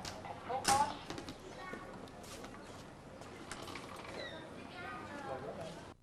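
A glass door swings open.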